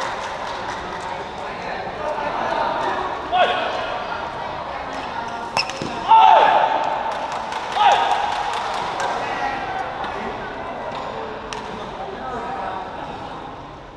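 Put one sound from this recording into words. Shuttlecocks are struck with rackets with sharp pops.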